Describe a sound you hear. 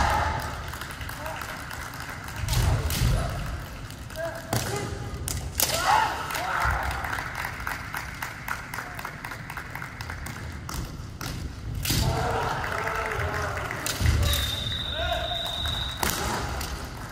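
Kendo fighters shout sharply in an echoing hall.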